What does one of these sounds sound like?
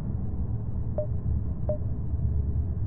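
Short soft electronic blips sound twice.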